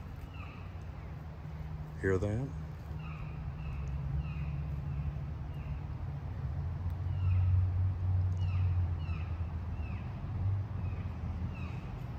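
An elk tears and chews grass close by.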